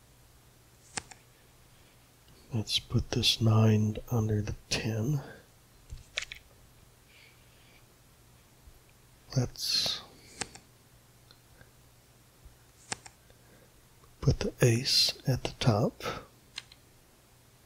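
Playing cards flip over with short, soft clicks.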